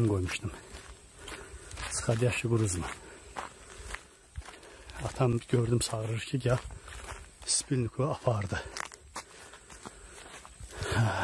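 A man speaks close up, in short bursts with pauses.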